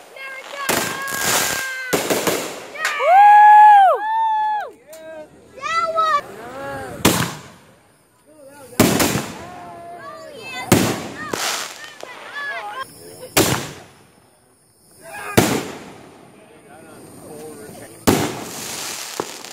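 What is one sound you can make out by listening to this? Fireworks crackle and sizzle after each burst.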